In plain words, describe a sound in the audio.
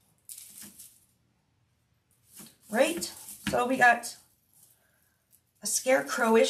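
Dry raffia rustles and crinkles as it is handled.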